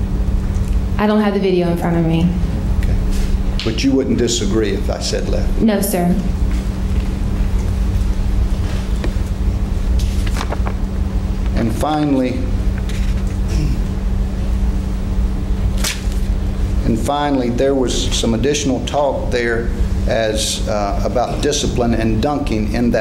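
A young woman speaks hesitantly through a microphone, with long pauses.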